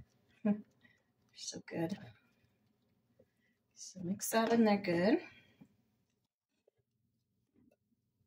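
A wooden spoon stirs a salad in a bowl.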